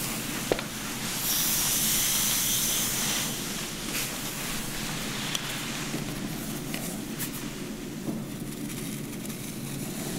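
A comb scratches softly through wet hair.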